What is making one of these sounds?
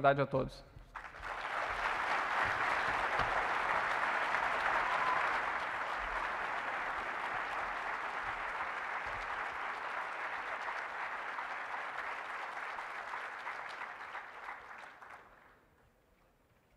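An audience applauds steadily in a large hall, then the applause fades.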